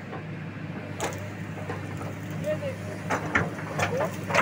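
An excavator's bucket scrapes and knocks against dirt.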